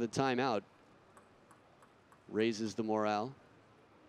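A table tennis ball bounces lightly on a table.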